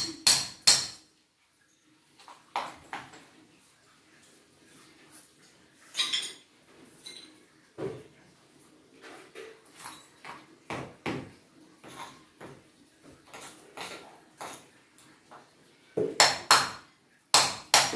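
Tile shards clatter and scrape as a man clears rubble.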